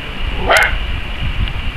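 A kitten mews briefly.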